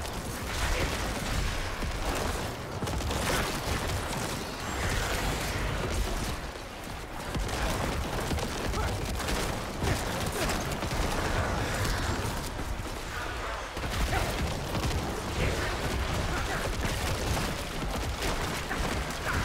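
Video game spells and hits crash and boom steadily.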